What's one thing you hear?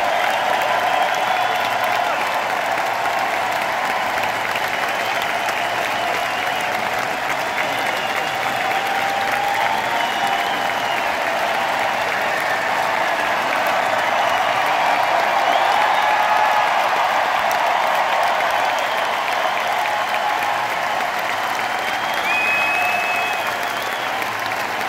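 Members of a crowd whistle loudly.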